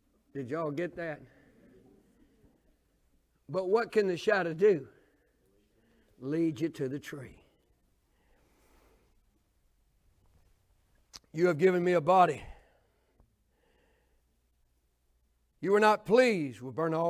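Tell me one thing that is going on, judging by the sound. An older man speaks with animation into a microphone, in short bursts with pauses.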